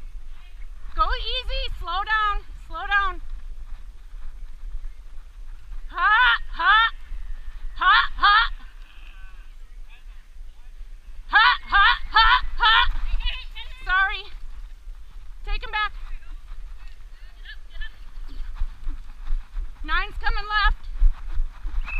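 A man on horseback shouts short calls to drive cattle.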